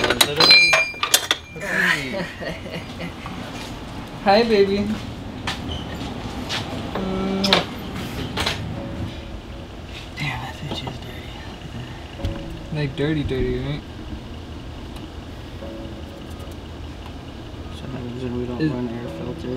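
Metal parts clink and knock under a car's hood.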